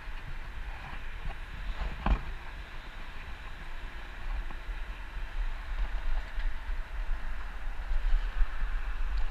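Wind rumbles and buffets against the microphone while riding outdoors.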